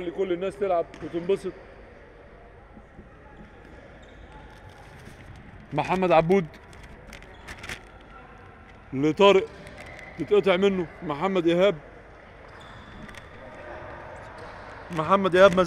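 Sneakers squeak on a hard indoor court.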